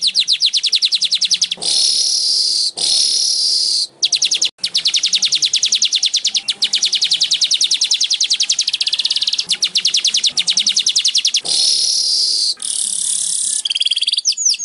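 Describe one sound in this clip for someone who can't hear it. A small bird sings a fast, buzzy, chattering song close by, with harsh hissing bursts in between.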